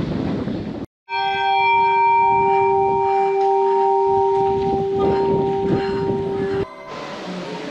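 A church bell rings with a steady, ringing tone.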